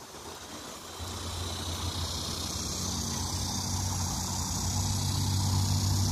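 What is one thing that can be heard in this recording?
A dog rolls and wriggles on its back, rustling the grass close by.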